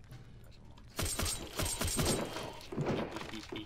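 A knife swings and strikes with sharp thuds.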